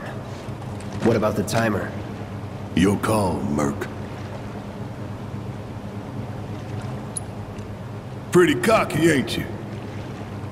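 A man speaks calmly in a deep voice, close by.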